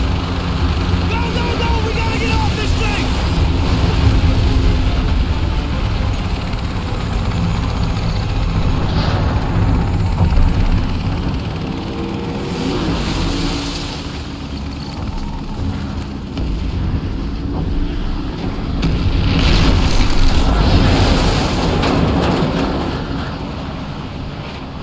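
Fire roars with a deep, steady rumble.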